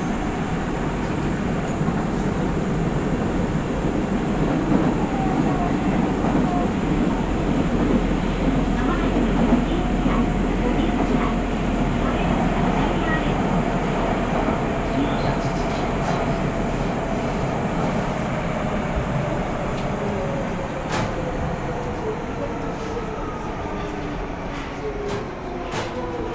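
An electric train hums and whines steadily while standing close by.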